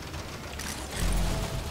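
An energy weapon fires with a whooshing blast.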